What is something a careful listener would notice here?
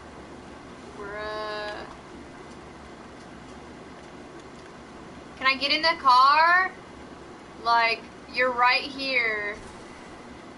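A young woman speaks with animation into a microphone in short, high bursts.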